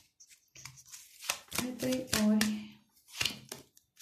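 A cloth rustles as it is lifted away.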